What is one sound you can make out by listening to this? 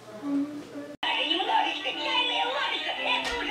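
A toy keyboard plays a tinny melody.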